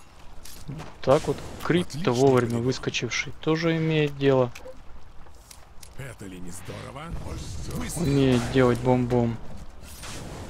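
A young man talks casually into a nearby microphone.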